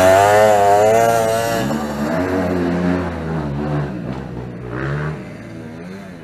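A dirt bike engine revs loudly close by, then fades into the distance with rising and falling revs.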